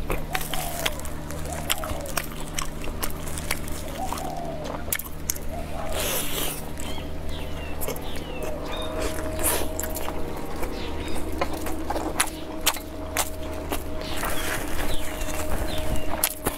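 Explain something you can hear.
A young woman chews and slurps noodles loudly, close to a microphone.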